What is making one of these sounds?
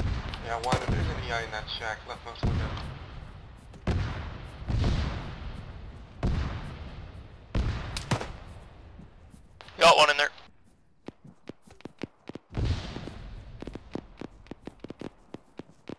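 Gunshots fire and echo across open ground.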